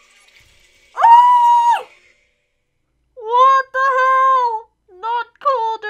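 A woman shrieks and wails in a high voice.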